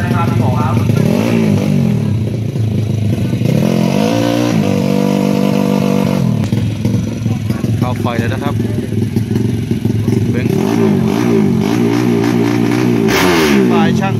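A two-stroke motorcycle engine idles loudly close by and is revved up and down in sharp bursts.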